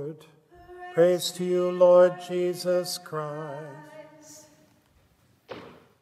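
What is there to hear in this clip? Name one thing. An older man chants in a steady voice.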